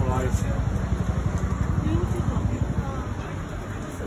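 A vending machine clunks as a woman uses it.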